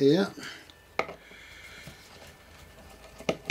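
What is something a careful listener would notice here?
Fingers knock and scrape against a stiff board.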